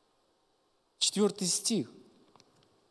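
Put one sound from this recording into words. A middle-aged man speaks briefly and loudly into a microphone.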